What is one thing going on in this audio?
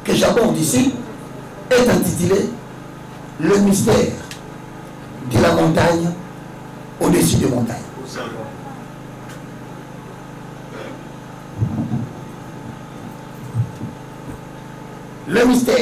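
A man speaks into a microphone in bursts, with pauses, in a calm, deliberate voice.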